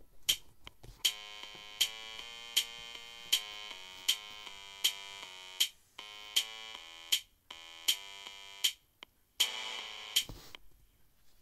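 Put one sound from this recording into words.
An electronic melody plays with a steady drum beat.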